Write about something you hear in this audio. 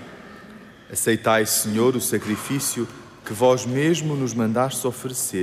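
A man chants into a microphone in a large echoing hall.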